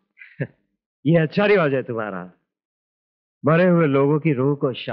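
A second middle-aged man answers with animation, close by.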